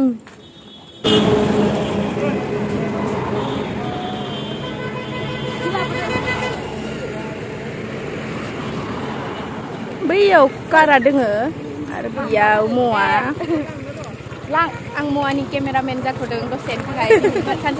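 Traffic rumbles past on a nearby road.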